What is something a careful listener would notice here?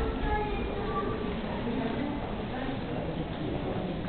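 A crowd of adults chatters at a distance in an echoing room.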